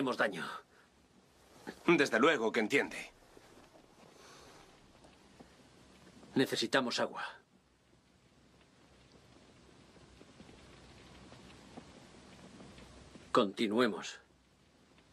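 A man speaks in short, tense phrases close by.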